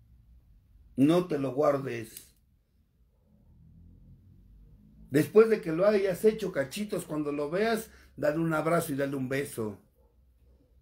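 A middle-aged man speaks with animation close to a phone microphone.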